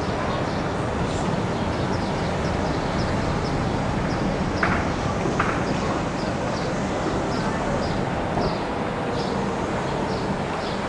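Water laps gently against wooden pilings.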